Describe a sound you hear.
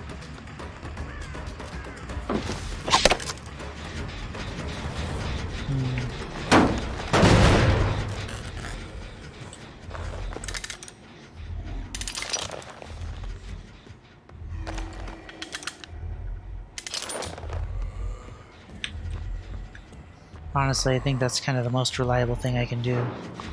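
Heavy footsteps thud steadily.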